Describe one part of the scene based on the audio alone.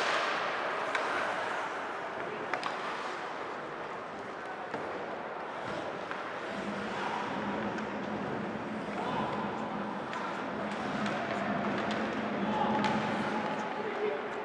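Skates scrape and hiss across ice.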